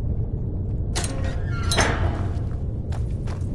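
A metal cage door creaks open.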